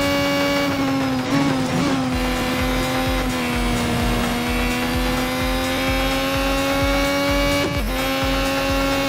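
A racing car engine whines at high, steady revs, dipping briefly on gear changes.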